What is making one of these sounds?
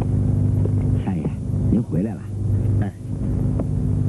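A man asks a short question calmly.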